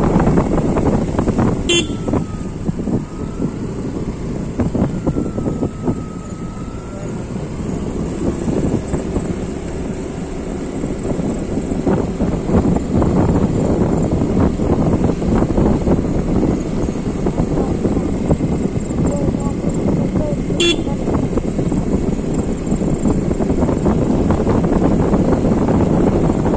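Tyres roll steadily over a wet road.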